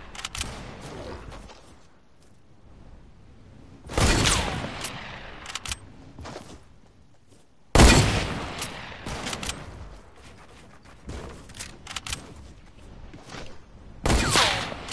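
Footsteps patter quickly on the ground in a game.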